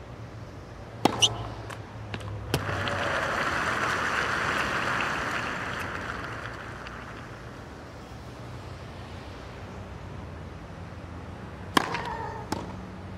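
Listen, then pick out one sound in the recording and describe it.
A tennis ball is struck hard with a racket.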